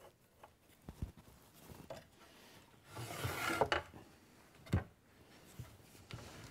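A wooden chair frame knocks on a workbench.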